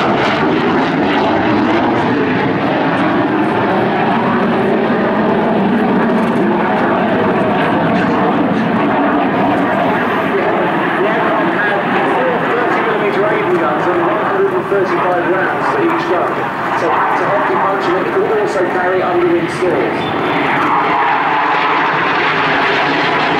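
A jet engine roars loudly overhead as a jet flies past.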